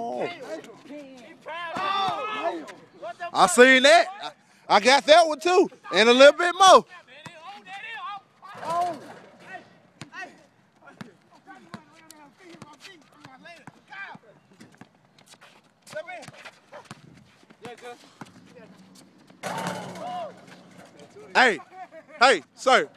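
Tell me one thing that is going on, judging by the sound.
A basketball bounces on asphalt.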